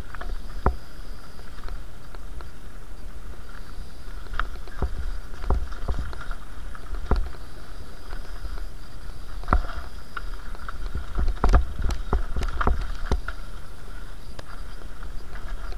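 A bicycle rattles and clatters over rocks and bumps.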